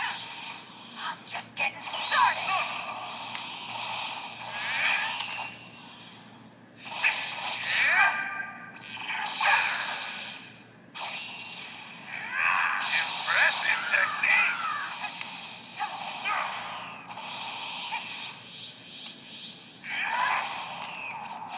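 A handheld game console plays loud blasts and whooshing effects through its small speaker.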